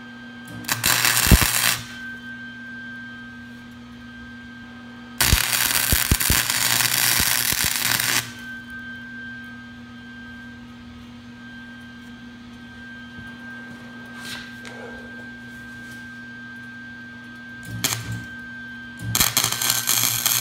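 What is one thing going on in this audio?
An arc welder crackles and buzzes loudly in short bursts.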